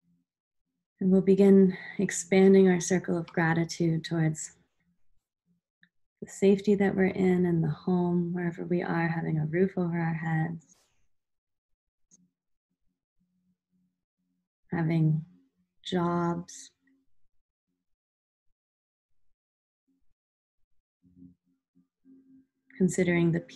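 A young woman speaks calmly and close to a microphone, with pauses.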